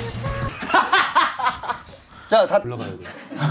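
Young men laugh loudly and shriek together.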